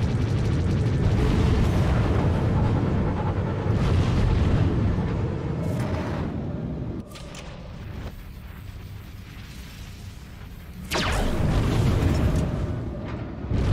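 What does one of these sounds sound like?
A spaceship engine roars loudly.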